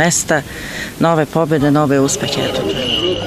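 A woman speaks into a microphone up close.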